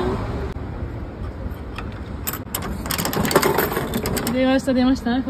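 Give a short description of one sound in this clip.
A toy vending machine's crank clicks and ratchets as it is turned.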